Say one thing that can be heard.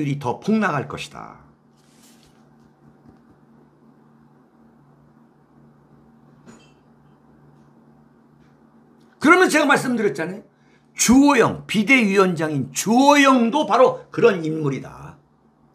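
A middle-aged man speaks with animation close to a microphone.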